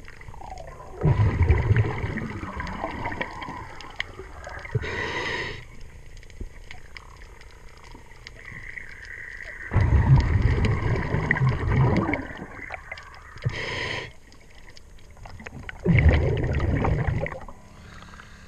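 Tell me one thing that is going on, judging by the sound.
Water rushes and bubbles in loud bursts close by, heard underwater.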